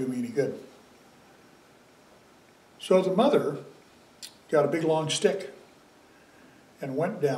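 An elderly man speaks calmly and slowly into a close microphone, with pauses.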